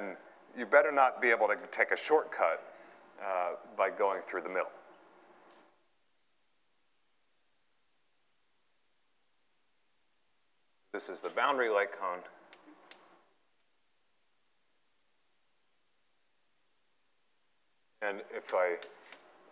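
A man lectures in a calm, explaining voice, with pauses between phrases.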